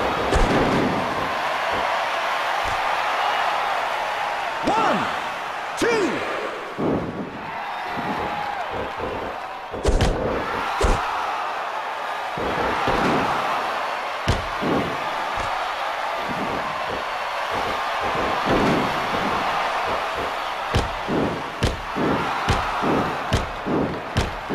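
Bodies thud and slam heavily onto a wrestling mat.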